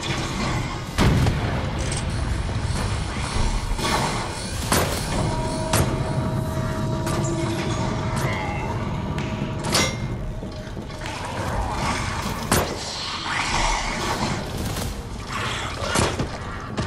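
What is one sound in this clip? Gunshots bang sharply now and then.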